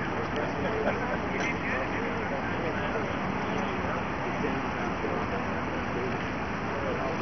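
A crowd of people chatter outdoors in the distance.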